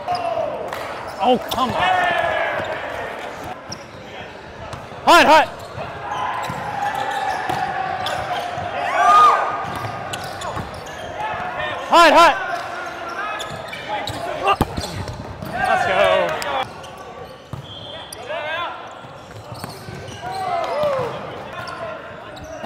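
Young men shout and call out to each other in an echoing gym.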